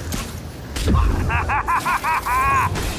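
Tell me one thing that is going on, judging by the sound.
A man laughs maniacally.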